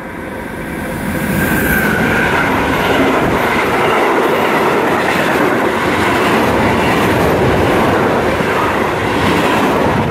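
A freight train approaches and rumbles past close by, its wheels clattering on the rails.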